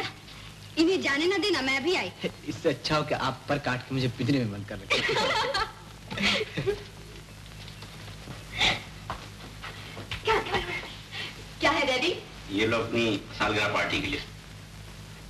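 A young woman talks brightly and with animation.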